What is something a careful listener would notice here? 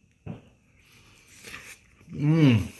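A man slurps food from a spoon.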